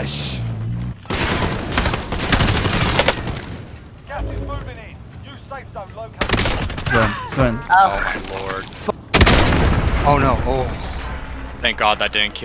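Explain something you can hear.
Gunfire bursts out in rapid shots.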